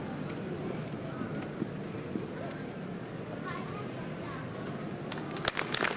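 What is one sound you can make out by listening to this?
A grand piano plays softly in a large hall.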